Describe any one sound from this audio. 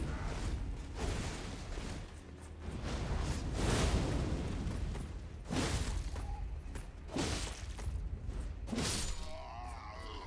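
Heavy blades slash and strike flesh with wet, crunching hits.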